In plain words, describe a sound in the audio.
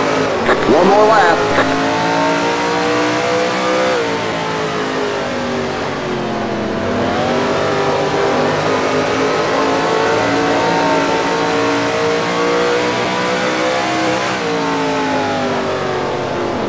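A race car engine roars steadily, its pitch rising and falling as it shifts and slows for turns.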